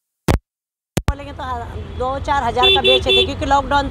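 A middle-aged woman speaks with feeling, close by.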